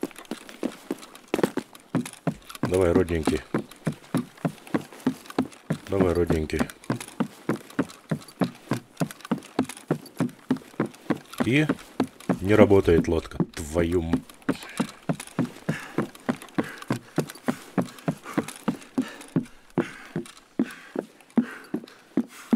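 Footsteps thud on hollow wooden planks.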